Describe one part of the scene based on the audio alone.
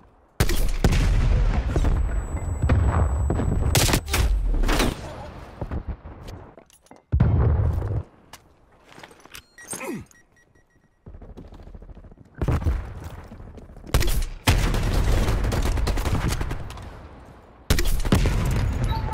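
A rifle fires in bursts of gunshots.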